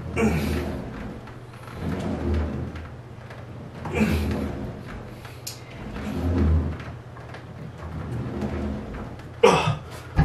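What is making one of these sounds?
A man breathes out hard with each effort.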